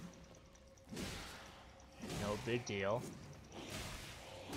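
A sword swishes through the air and clashes.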